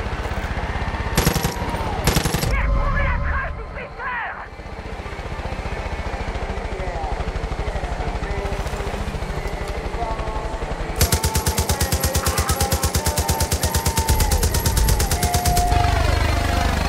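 A helicopter's rotor thumps steadily overhead.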